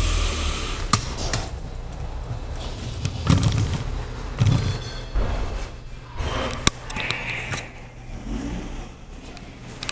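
A bicycle rolls along a hard floor with rattling and clicking.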